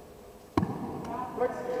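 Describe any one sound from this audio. A bat sharply strikes a ball in a large echoing hall.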